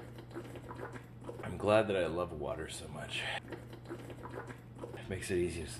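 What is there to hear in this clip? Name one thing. A man gulps water from a bottle.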